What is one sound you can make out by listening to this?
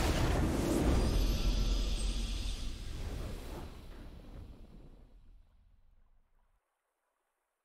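A triumphant victory fanfare swells and fades out.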